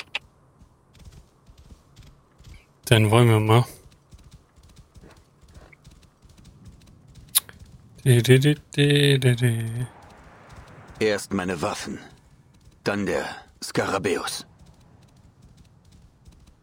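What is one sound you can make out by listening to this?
A horse gallops softly over sand.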